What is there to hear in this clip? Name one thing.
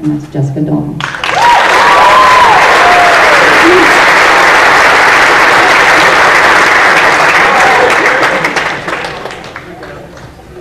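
An audience applauds loudly, then the applause fades away.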